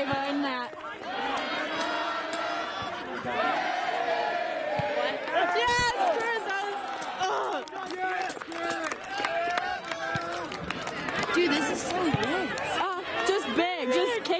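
Several young men and teenagers shout and call out across an open outdoor field.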